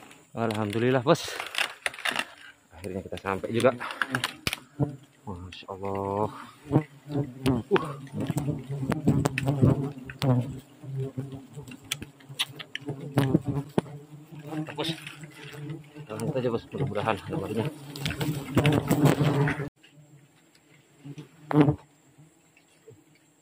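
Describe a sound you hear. Bees buzz in a dense swarm close by.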